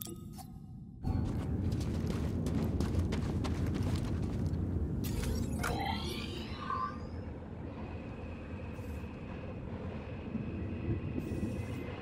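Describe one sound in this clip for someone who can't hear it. A low rumbling drone hums steadily in a cavern.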